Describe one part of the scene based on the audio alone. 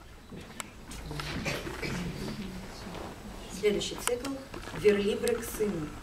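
A young woman reads aloud into a microphone over loudspeakers.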